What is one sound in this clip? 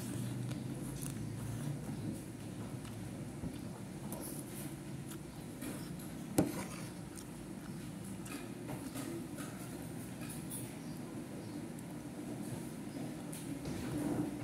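A metal fork scrapes and clinks against a plate.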